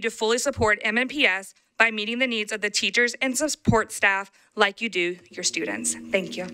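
A young woman speaks into a microphone with feeling.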